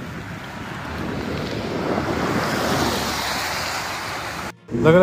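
A car drives past with tyres hissing on a wet road.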